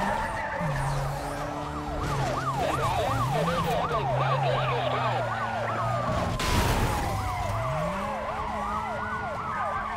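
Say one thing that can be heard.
Police sirens wail rapidly up and down close by.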